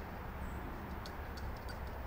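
A spray bottle squirts in short hisses.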